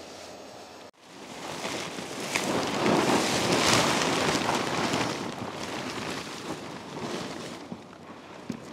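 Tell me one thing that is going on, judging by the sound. Paper crackles and rustles loudly as it is tossed and crumpled.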